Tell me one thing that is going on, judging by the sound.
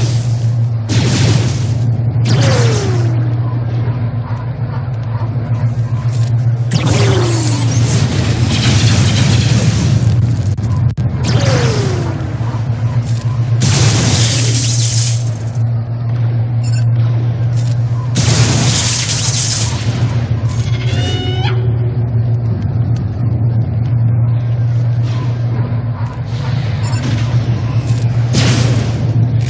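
Laser blasters fire and explosions burst in quick, loud bursts.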